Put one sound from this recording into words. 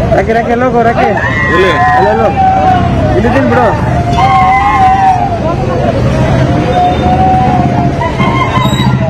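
A woman wails and sobs loudly.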